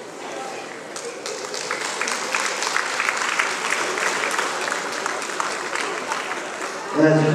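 An audience applauds, with claps growing quicker and louder.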